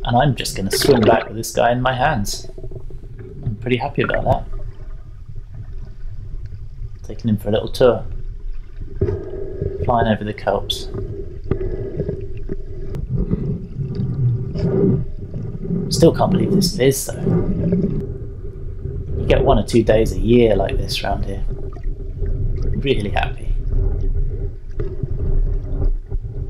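Water bubbles and swirls close by, heard from underwater.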